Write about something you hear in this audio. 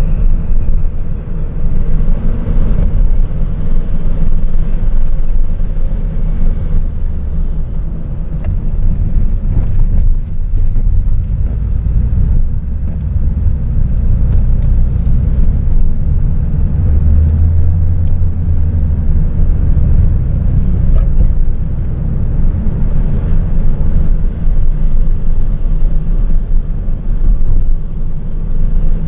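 A car engine hums steadily from inside a moving car.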